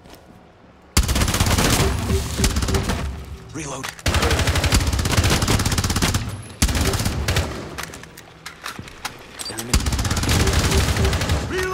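Automatic gunfire rattles in rapid, loud bursts.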